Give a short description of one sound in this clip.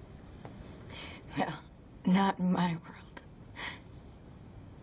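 A woman speaks softly and tearfully, close by.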